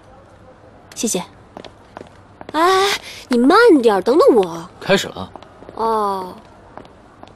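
A young woman calls out to someone close by.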